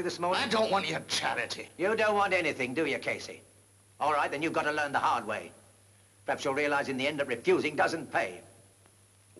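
A man speaks firmly and insistently, close by.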